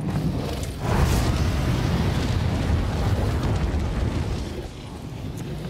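A dragon roars with a deep, loud rumble.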